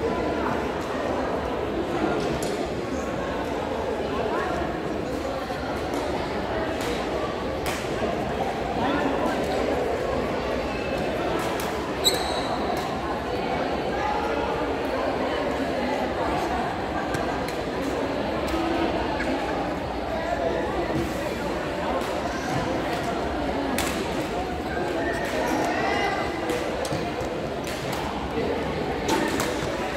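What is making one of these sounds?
A crowd chatters steadily in a large echoing hall.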